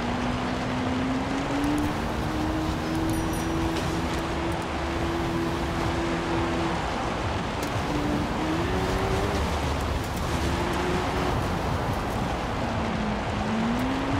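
Tyres rumble over rough ground.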